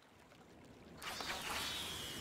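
An arrow whooshes through the air.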